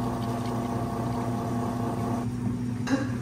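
Milk pours and splashes into a cup.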